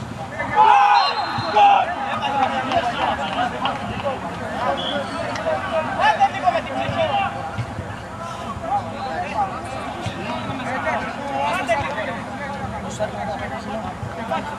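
Men shout and call out to each other across an outdoor football pitch.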